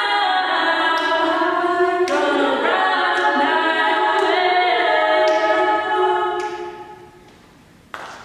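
A choir of young women and men sings together in harmony, echoing in a large hall.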